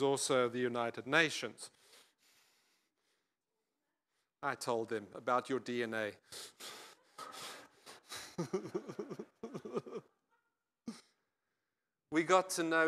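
An elderly man speaks with animation through a microphone, pausing now and then.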